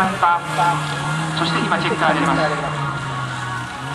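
Tyres squeal on a wet track.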